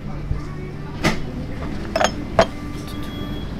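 Dishes on a wooden tray knock against a wooden table.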